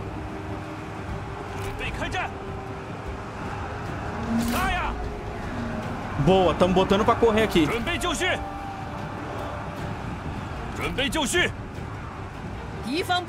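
Weapons clash in a large battle.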